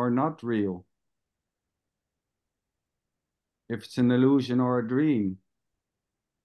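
A man speaks over an online call, in short bursts with pauses.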